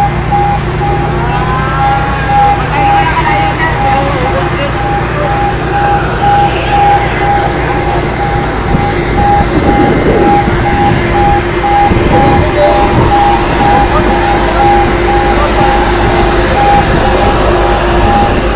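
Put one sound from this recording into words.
A fire truck engine rumbles steadily nearby.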